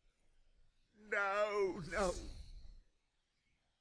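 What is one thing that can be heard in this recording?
A man cries out in a long, drawn-out wail.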